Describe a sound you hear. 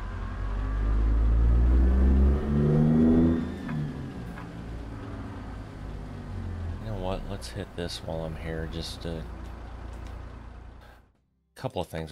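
A heavy truck engine rumbles and revs.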